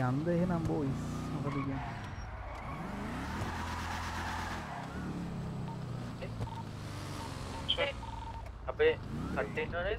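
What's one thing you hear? A car engine revs and roars as a sports car drives.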